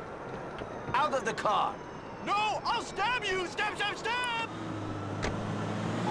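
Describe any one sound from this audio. A car door opens and shuts.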